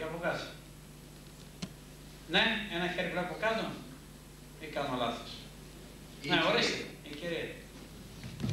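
A middle-aged man speaks in bursts through a microphone in an echoing room.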